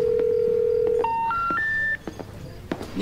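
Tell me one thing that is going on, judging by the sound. A phone plays a short rising series of beeps as the call ends.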